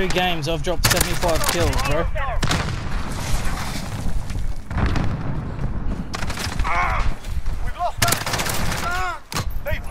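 Rapid gunfire rattles in sharp bursts.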